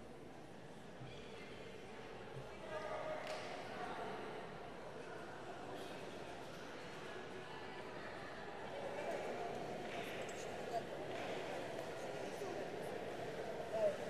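Young women talk among themselves nearby, in an echoing hall.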